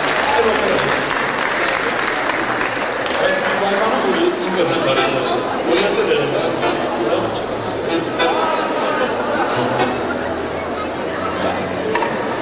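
A man speaks through a loudspeaker.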